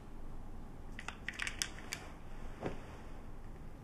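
Pills rattle inside a plastic bottle.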